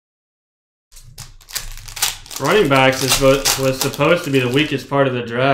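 Foil wrappers crinkle and tear open.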